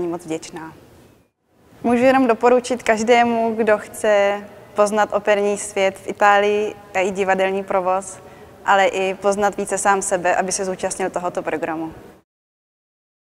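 A young woman speaks calmly and warmly close to a microphone.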